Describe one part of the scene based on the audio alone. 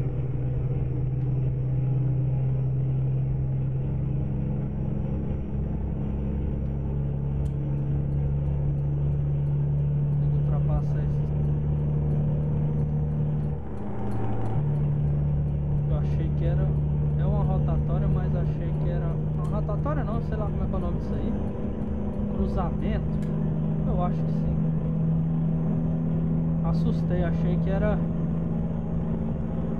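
A truck engine drones steadily, dipping briefly as the gears change.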